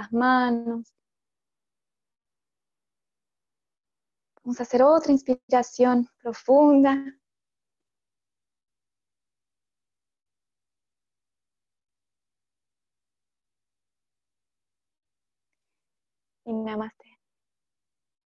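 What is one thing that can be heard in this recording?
A woman speaks calmly and softly over an online call, with long pauses.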